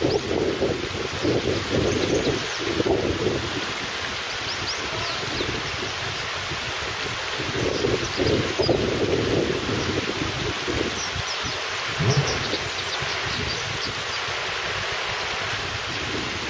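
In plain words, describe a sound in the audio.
A shallow river ripples and gurgles steadily over rocks.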